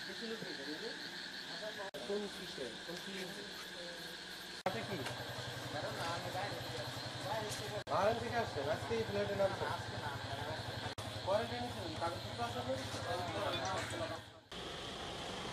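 Men talk nearby in low voices.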